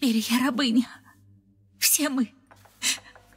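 A young woman pleads in a distressed voice, close by.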